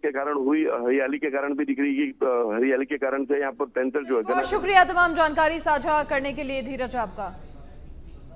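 A man reads out news steadily through a microphone.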